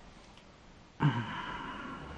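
A fridge door is pulled open.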